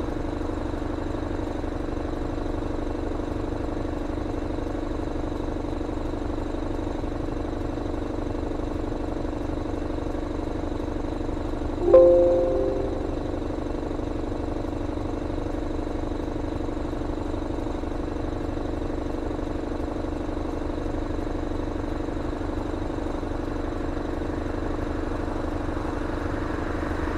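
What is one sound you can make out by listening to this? A bus engine idles with a steady low hum.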